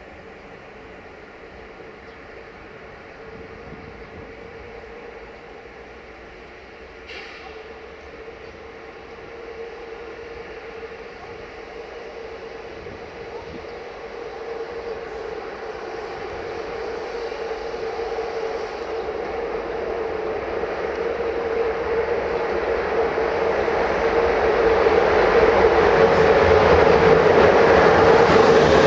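An electric locomotive hums as it approaches, growing steadily louder.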